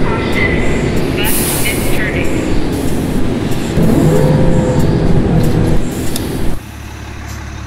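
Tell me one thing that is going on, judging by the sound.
A diesel city bus engine runs as the bus drives along.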